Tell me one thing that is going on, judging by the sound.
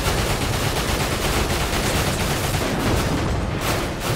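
A helicopter explodes with a loud blast.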